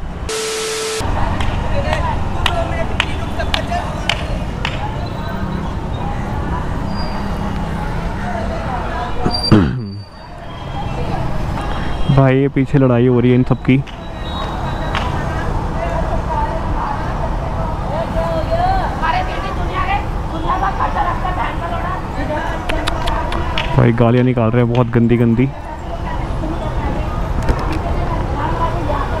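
Motorcycle and scooter engines hum and rumble in busy street traffic.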